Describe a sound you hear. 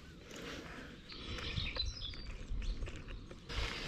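Plastic parts of a small mount click and snap as hands adjust them.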